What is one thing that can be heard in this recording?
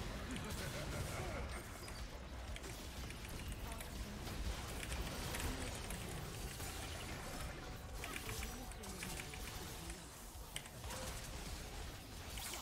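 Spell blasts and clashing effects from a video game crackle and boom.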